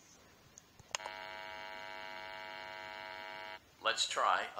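An electric hum buzzes steadily.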